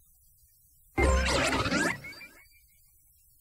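A cartoonish electronic character voice chirps loudly.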